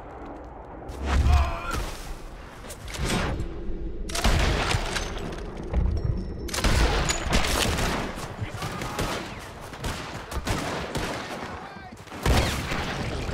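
Shotgun blasts ring out loudly.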